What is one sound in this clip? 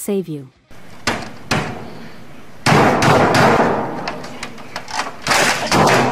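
A man bangs hard on a computer keyboard.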